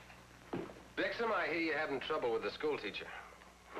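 A man talks calmly.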